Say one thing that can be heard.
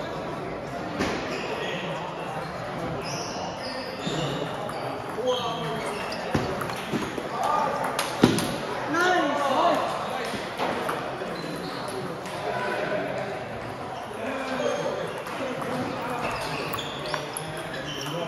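A ping-pong ball clicks sharply back and forth on paddles and a table.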